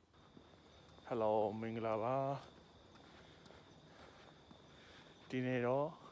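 A man speaks calmly and close by, his voice slightly muffled.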